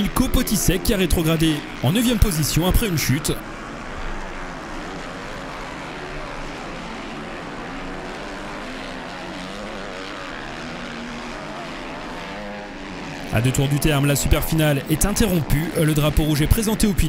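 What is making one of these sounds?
Motorcycle engines rev loudly, rising and falling in pitch.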